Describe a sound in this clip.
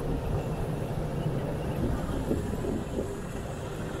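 A motorcycle engine rumbles close by as it rides past.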